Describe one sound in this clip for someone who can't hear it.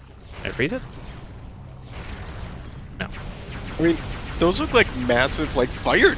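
A blaster fires energy shots.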